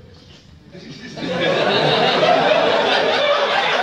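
A group of young men murmur and shout together in a noisy room.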